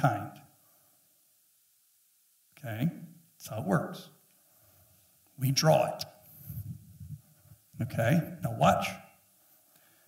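A man speaks with animation in short bursts, through a microphone in a large room.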